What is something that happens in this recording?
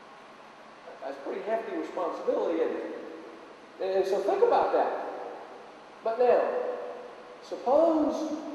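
A middle-aged man speaks calmly through a microphone in a reverberant room.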